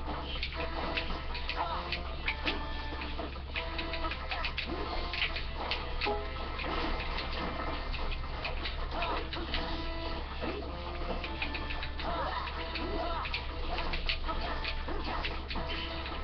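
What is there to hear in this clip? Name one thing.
Video game sword swings and hits crack sharply, again and again.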